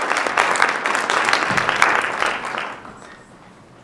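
An audience applauds loudly in a large hall, then the applause dies away.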